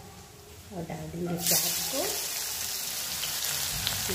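Chopped onions drop into hot oil.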